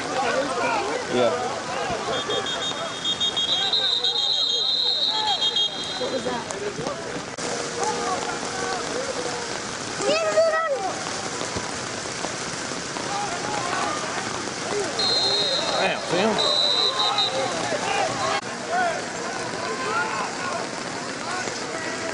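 A crowd of young men and boys chatters and shouts outdoors.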